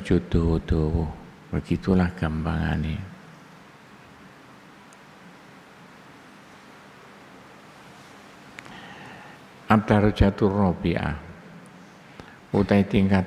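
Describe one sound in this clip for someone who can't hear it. An older man speaks calmly into a microphone, pausing between phrases.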